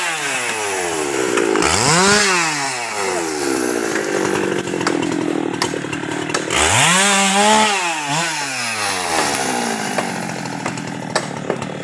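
A chainsaw engine runs close by, revving up and down loudly.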